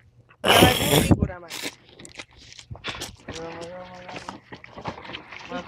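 A stick strikes and splashes in shallow water.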